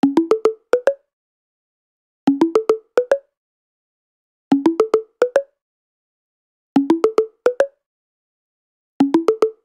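Short plucked synth notes play a quick repeating melody in bursts.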